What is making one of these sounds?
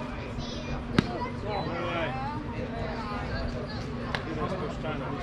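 A baseball smacks sharply into a catcher's mitt outdoors.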